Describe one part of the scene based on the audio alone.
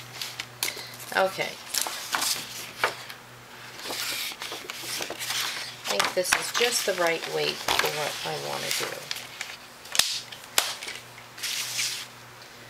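Stiff paper rustles and slides across a hard surface.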